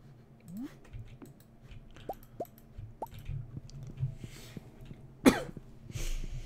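Short electronic game sound effects chime and blip.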